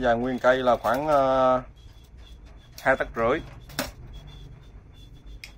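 Metal hand tools clink and rattle as they are picked up and moved.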